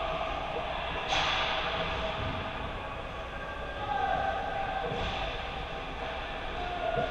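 Skate blades scrape and hiss across the ice in a large, echoing rink.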